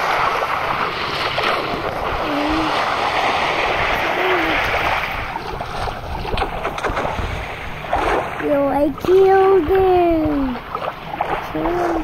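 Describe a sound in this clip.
Water swishes and bubbles around a swimmer.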